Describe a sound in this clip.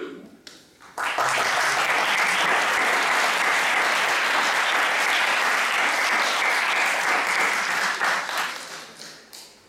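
Applause fills the hall.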